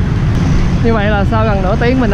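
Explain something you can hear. Motorbike engines rumble in busy traffic nearby.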